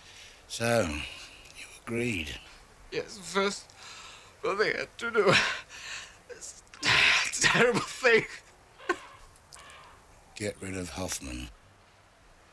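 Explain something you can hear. A man speaks in a choked, tearful voice, close by.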